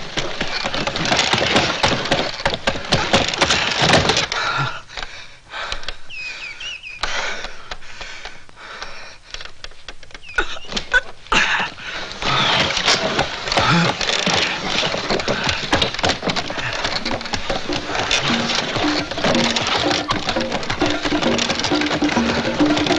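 A wooden sled rattles and scrapes fast down a slope.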